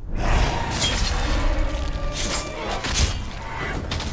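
A blade slashes and hits with heavy, wet thuds.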